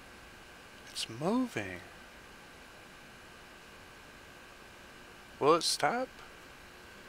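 A man speaks a few short words close by.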